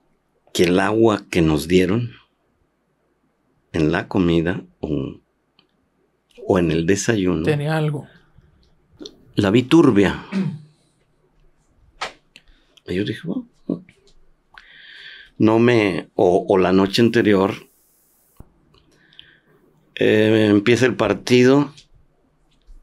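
An elderly man speaks with animation into a close microphone, pausing between phrases.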